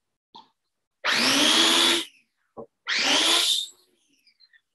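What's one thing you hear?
An electric grinder whirs loudly in short bursts, each rising in pitch.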